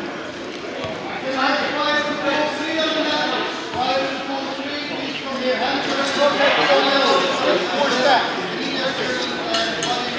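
Several men talk in a large echoing hall.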